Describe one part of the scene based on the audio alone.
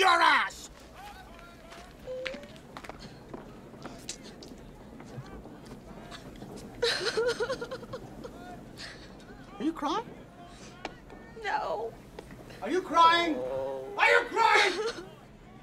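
A young woman sobs.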